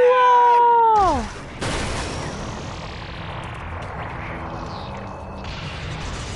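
A powerful energy blast roars and hisses.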